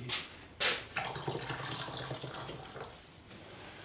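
Water pours from a kettle.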